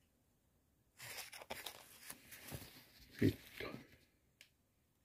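A plastic bag crinkles and rustles in a hand.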